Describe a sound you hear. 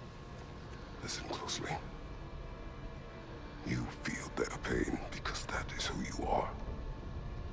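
A man speaks slowly in a deep, calm voice.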